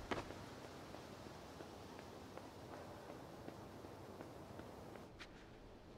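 Small footsteps patter on a hard floor.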